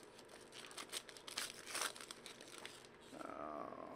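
A foil wrapper crinkles and rustles as hands tear it open.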